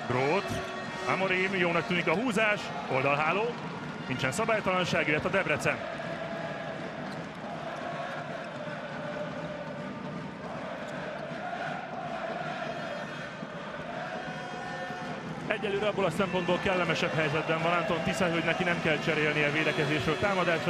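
A crowd chants and claps in rhythm.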